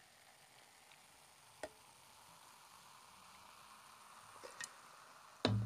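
Beer pours from a can into a glass mug, gurgling and fizzing.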